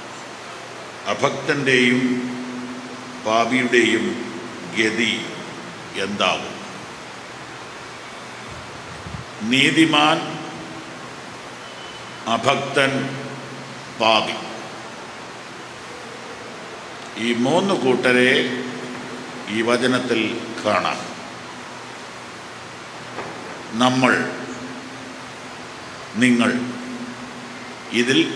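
A middle-aged man speaks slowly and solemnly into a microphone, with long pauses between phrases.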